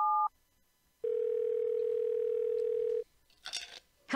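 A phone line gives a steady tone.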